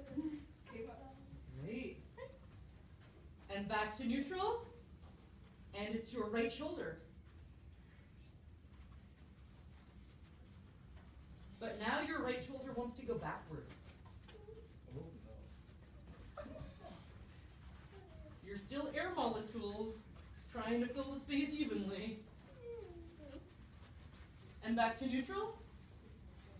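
A woman calls out instructions with animation.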